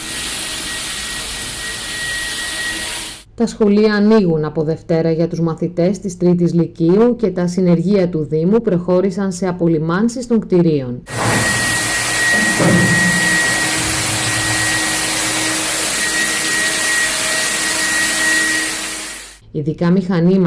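A spraying machine hisses steadily with a loud rushing noise.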